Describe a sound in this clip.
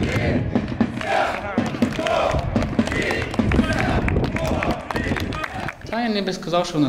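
Players clap their hands in rhythm.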